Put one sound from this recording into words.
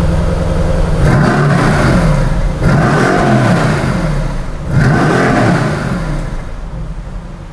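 A sports car engine revs sharply several times, echoing under a concrete roof.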